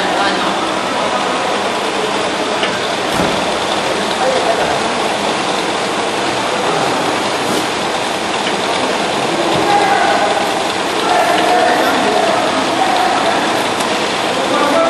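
Plastic oil jugs thud as they drop into a cardboard box.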